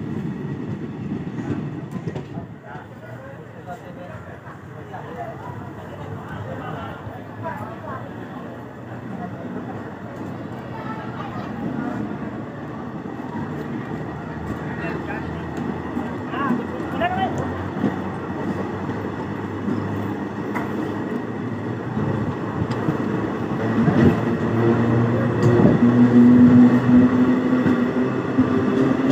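Metal wheels clatter and squeal on rails.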